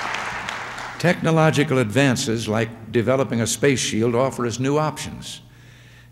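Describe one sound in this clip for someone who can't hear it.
An elderly man speaks calmly into a microphone, heard over loudspeakers in a large hall.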